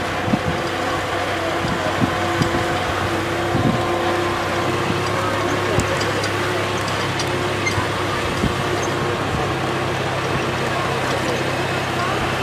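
Wind rustles through tree leaves outdoors.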